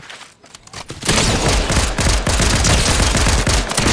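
A gun fires rapidly in bursts.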